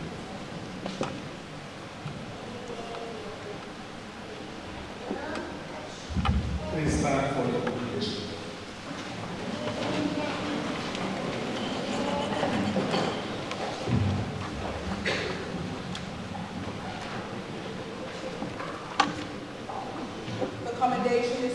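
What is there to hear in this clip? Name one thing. A woman speaks clearly through a microphone in an echoing hall.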